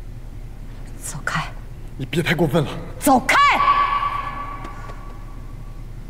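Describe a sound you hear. A woman shouts angrily up close.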